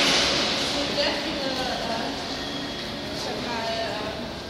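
Several men talk in the distance in a large echoing hall.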